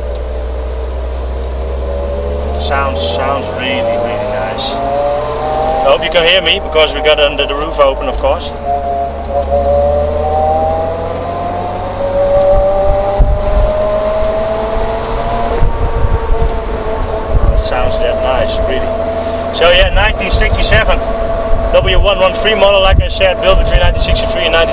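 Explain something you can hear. Wind rumbles past an open car.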